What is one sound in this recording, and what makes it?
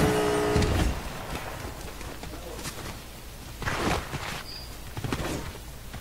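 Footsteps run across hard ground.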